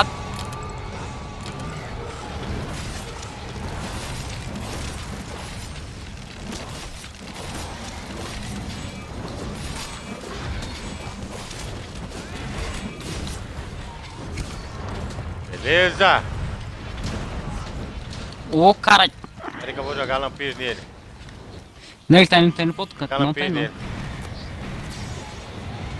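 Heavy combat sounds rumble with clashing blows and crackling sparks.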